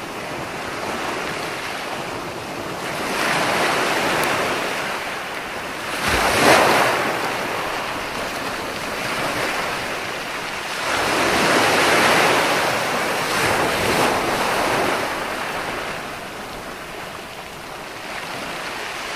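Foamy surf hisses as it draws back over the sand.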